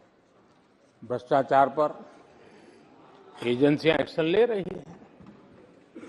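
An elderly man speaks loudly through a microphone in a large hall.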